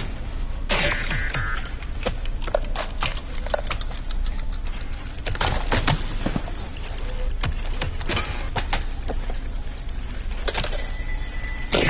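Plastic items clatter and knock.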